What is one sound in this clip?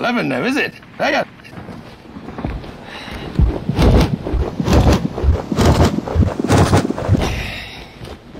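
A man speaks in a deep, gruff voice close by.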